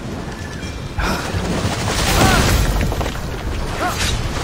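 A large creature roars and stomps heavily.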